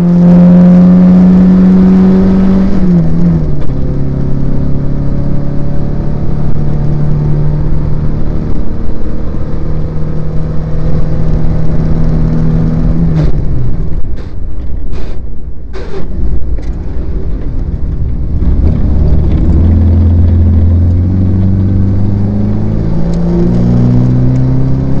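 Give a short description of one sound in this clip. A car engine roars loudly, dropping in pitch as gears change and rising again as it accelerates.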